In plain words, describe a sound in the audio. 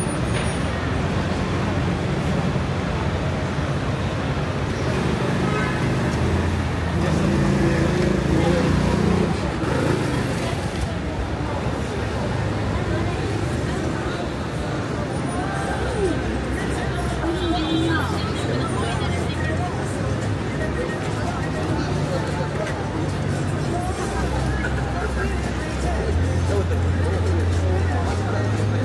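Women chat nearby on a busy street outdoors.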